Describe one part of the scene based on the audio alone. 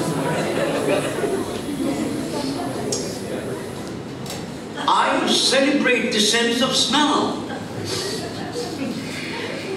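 A man speaks through a microphone and loudspeakers.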